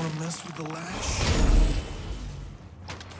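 A loud blast booms.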